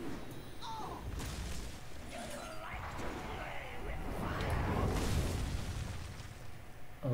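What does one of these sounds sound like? Game effects whoosh and explode.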